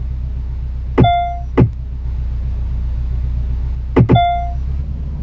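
A gear shift clicks with a short chime.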